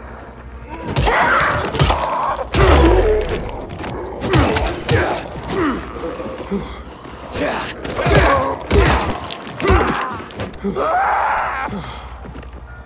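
A heavy club strikes with dull, hard thuds.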